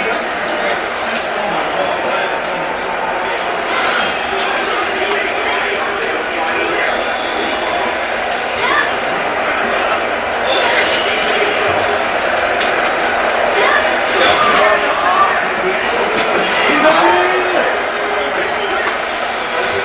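Swords clash and clang.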